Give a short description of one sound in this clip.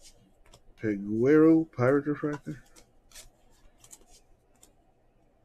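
Trading cards rustle and click softly as hands sort through them.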